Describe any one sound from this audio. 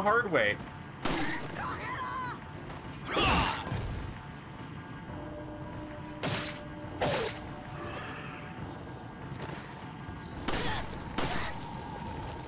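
Gunshots bang sharply several times.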